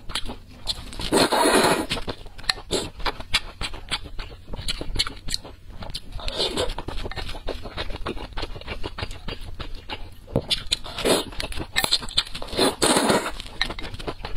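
A young woman slurps noodles loudly up close.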